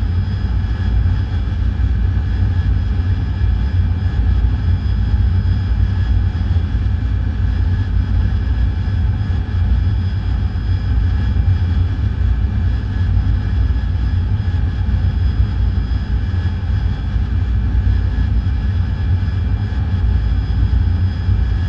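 A jet engine roars steadily with a deep rumble.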